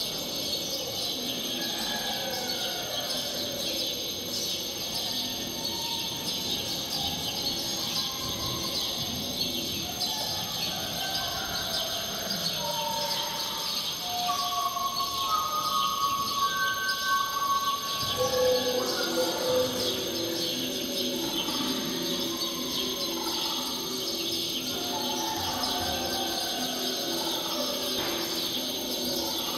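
A group of men and women sing together nearby.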